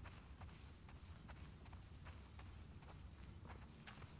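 Tall grass rustles as someone pushes through it.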